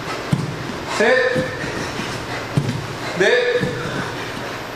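A man grunts loudly with effort.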